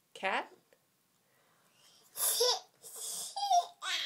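A toddler giggles.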